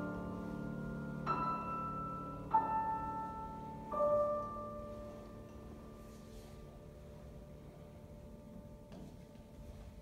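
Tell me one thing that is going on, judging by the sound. A grand piano plays a few slow notes that ring out and fade.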